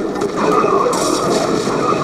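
Gunfire rattles in a video game battle.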